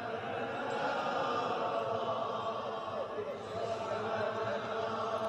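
A large crowd murmurs and recites softly along.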